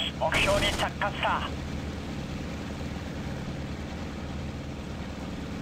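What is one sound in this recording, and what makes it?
A piston-engined warplane drones in flight.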